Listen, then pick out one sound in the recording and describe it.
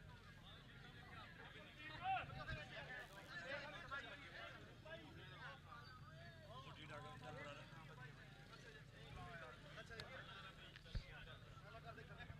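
Several men talk at once nearby, outdoors.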